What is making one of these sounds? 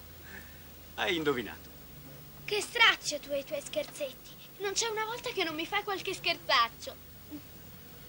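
A man talks cheerfully.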